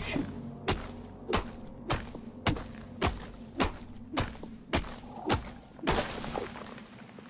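Heavy blows thud in a quick, steady rhythm, then stop.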